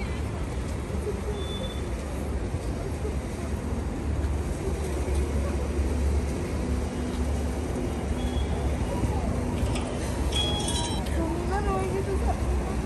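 A young woman sobs and cries nearby.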